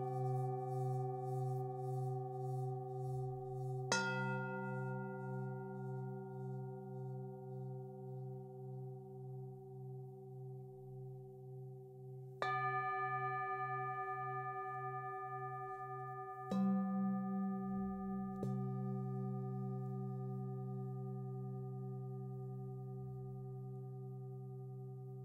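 Metal singing bowls are struck and ring with long, shimmering tones that slowly fade.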